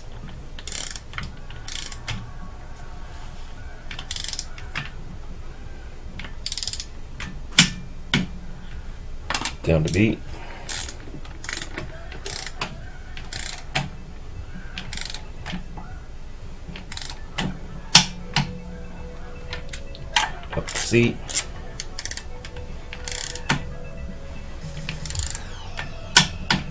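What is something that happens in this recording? A ratchet wrench clicks rapidly as bolts are turned on an engine.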